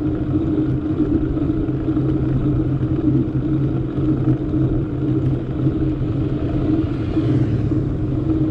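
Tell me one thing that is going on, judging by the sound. Bicycle tyres hum steadily on a paved road.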